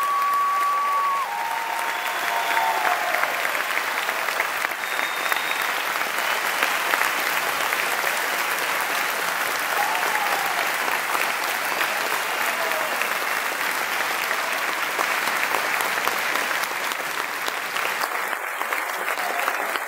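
A large crowd claps and cheers loudly in an echoing hall.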